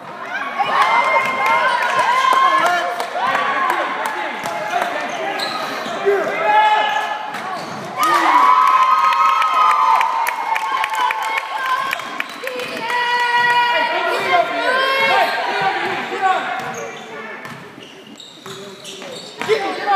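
Basketball shoes squeak on a hardwood floor.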